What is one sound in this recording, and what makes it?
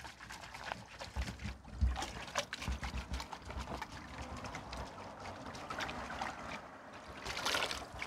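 Water sloshes as hands rinse something in a plastic bucket.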